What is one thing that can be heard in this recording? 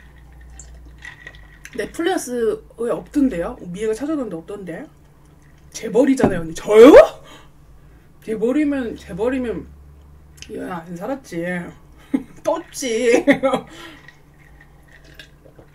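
A young woman gulps a drink.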